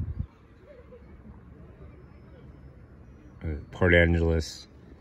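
Leaves rustle softly in a light breeze.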